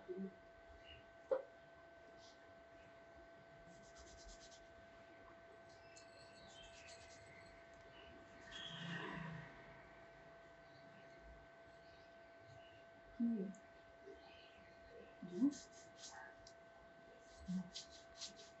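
Fingers rub and rustle through hair on a scalp.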